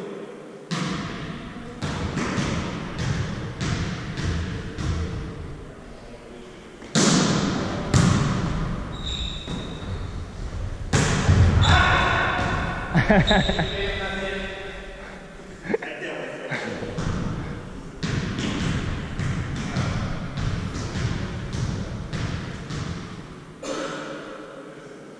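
A ball is struck and thuds, echoing in a large hall.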